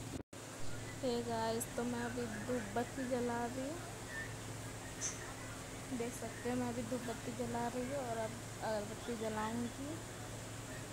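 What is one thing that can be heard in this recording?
A woman's voice sounds close by.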